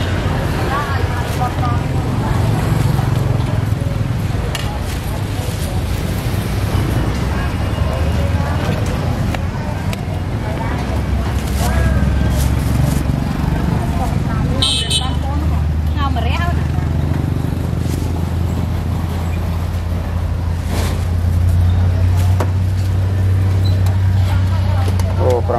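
People chatter in a busy outdoor market.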